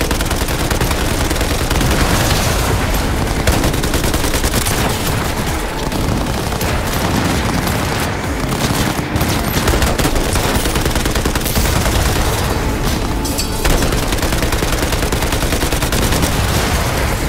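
A car engine roars steadily as it drives fast.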